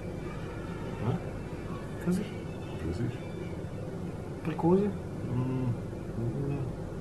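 Middle-aged men talk casually nearby.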